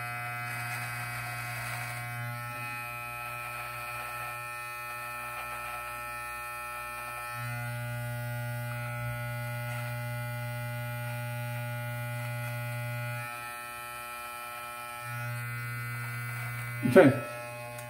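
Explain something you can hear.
An electric clipper buzzes steadily, close by.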